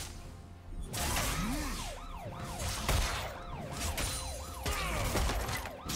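Swords and blows clash and strike in quick bursts.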